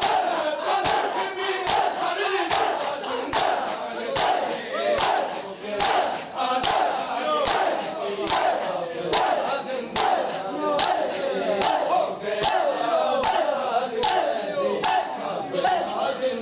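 Men chant together loudly in unison.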